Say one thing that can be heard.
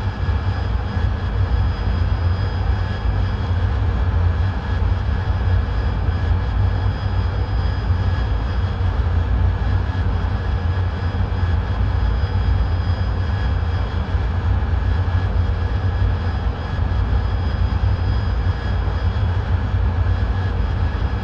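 A jet engine roars steadily with a deep rumble.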